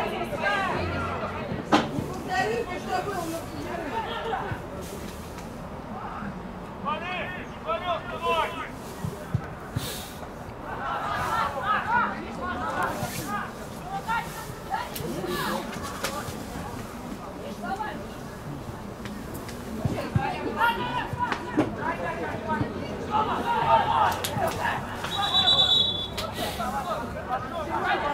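Young men shout to each other across an open pitch outdoors.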